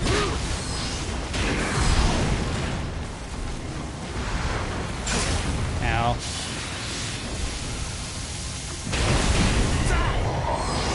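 A large beast roars.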